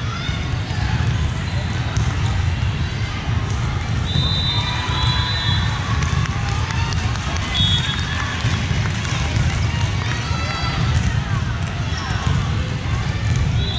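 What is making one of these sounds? A volleyball thuds as it is struck.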